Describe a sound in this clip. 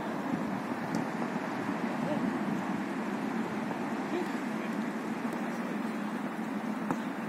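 A football is kicked with dull, distant thumps.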